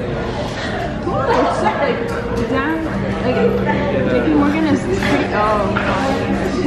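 A young woman talks cheerfully close by.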